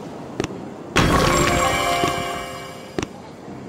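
A bright chiming jingle plays.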